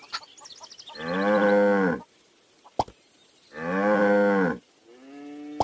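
A cartoon cow moos loudly twice.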